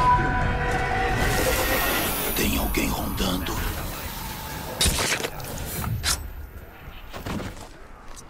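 A sword slashes and strikes in a fight.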